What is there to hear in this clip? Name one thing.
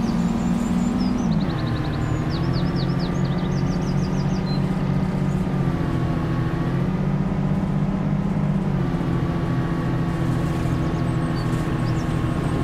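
A bus engine hums steadily, its pitch shifting slightly as the bus drives along.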